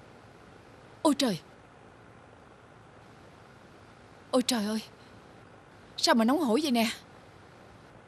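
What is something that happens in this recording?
A middle-aged woman speaks in short, worried bursts close by.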